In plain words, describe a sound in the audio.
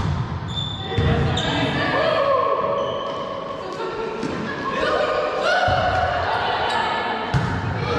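Young women shout and call out to each other across the court.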